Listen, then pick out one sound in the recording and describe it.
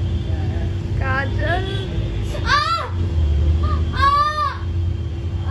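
A young girl whimpers in pain up close.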